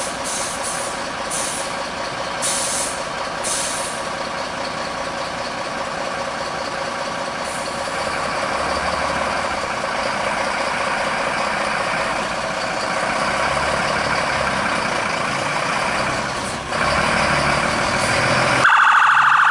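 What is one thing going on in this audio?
A large truck engine idles steadily, then revs louder as the truck pulls away.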